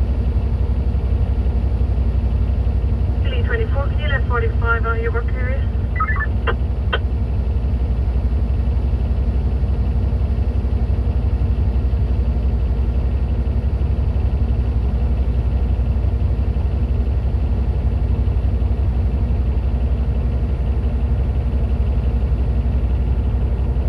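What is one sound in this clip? A large diesel bulldozer engine idles, heard from inside the cab.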